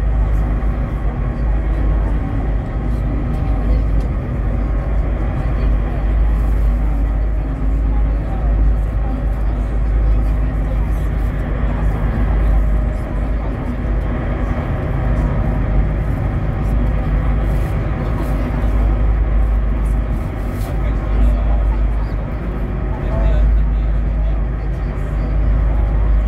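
A boat's engine rumbles steadily.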